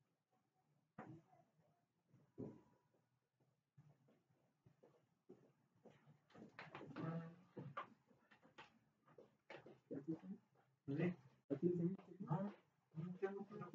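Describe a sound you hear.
A man speaks calmly in a room with a slight echo.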